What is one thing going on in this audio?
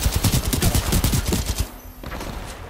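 A gun fires rapid bursts of shots at close range.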